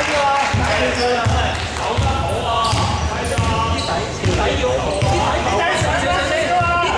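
A basketball bounces steadily on a hard floor in a large echoing hall.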